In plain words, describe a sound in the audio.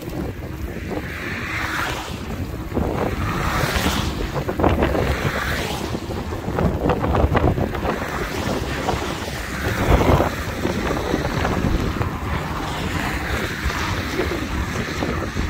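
Gusty wind rumbles and buffets outdoors.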